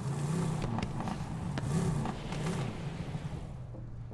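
Tyres skid and crunch over debris.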